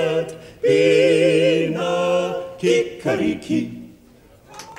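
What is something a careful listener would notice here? A quartet of men sings in close harmony.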